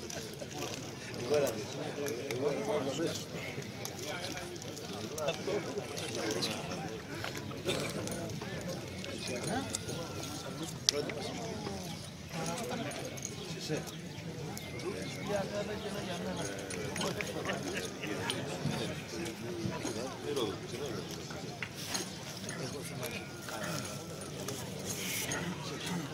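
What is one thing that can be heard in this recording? A crowd of men chatter outdoors.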